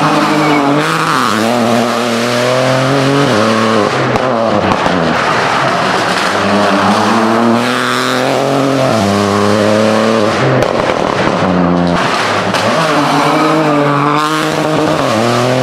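Rally car engines roar loudly, revving up and down through the gears.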